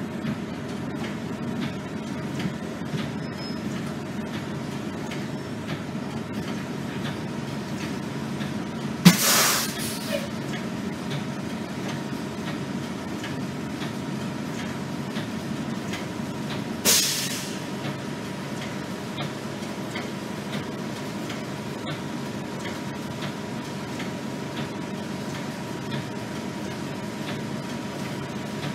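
A bus engine rumbles steadily inside the cabin.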